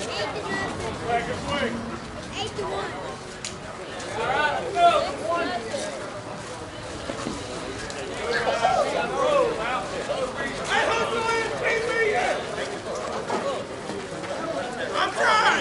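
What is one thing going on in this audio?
Several men and women shout and cheer outdoors at a distance.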